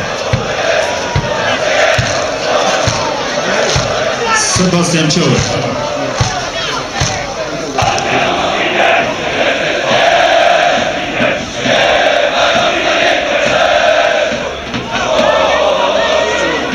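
A large crowd of fans chants and sings loudly outdoors.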